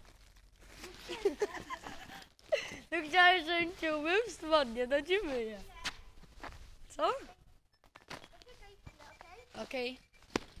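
A boy speaks close to the microphone, high-pitched and playful.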